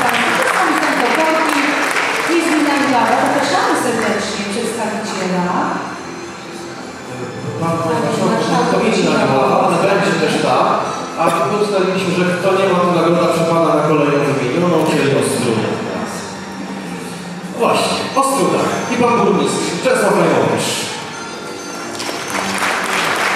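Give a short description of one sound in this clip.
An elderly woman speaks calmly into a microphone, heard over loudspeakers in a large echoing hall.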